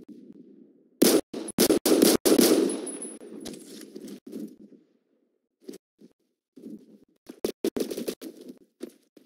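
Video game gunshots fire in quick, sharp bursts.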